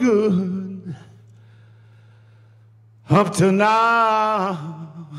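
An older man sings into a microphone.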